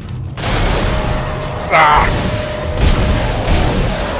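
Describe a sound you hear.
A monstrous creature shrieks and snarls close by.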